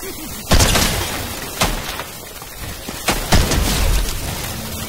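A gun fires several loud, sharp shots.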